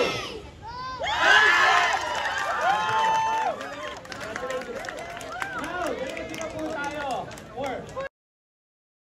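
A group of young men shout and cheer together.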